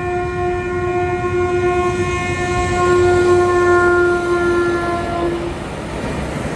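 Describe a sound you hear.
A train horn blares in long, loud blasts.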